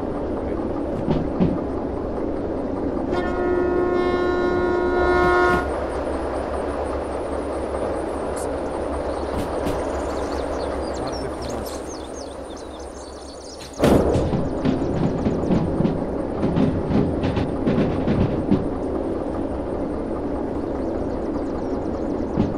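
A diesel locomotive engine rumbles steadily.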